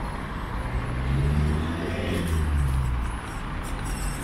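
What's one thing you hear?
A car drives past nearby.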